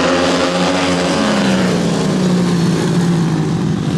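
A motorcycle engine revs up close by and rushes past.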